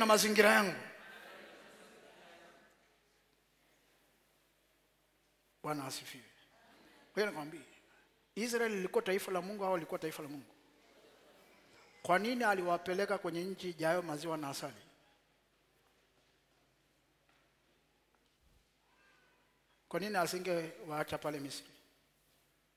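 A man preaches through a microphone in short, forceful bursts, with pauses between them, in a large echoing hall.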